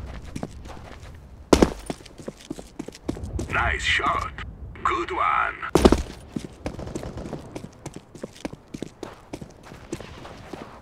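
Footsteps tread quickly on hard stone.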